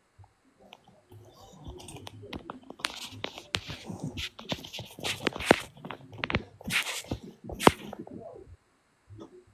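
A phone bumps and rustles as it is handled.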